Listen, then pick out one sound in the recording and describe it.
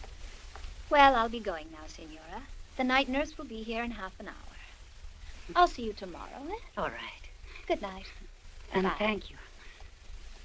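An elderly woman speaks softly nearby.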